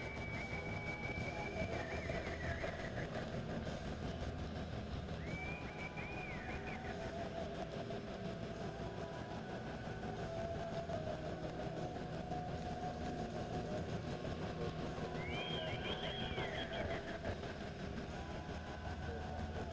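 A horse lopes on soft arena dirt, its hooves thudding.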